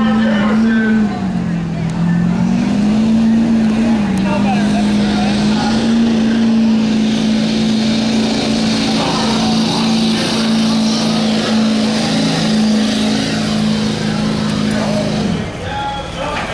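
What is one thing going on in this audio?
A diesel truck engine roars loudly under heavy strain.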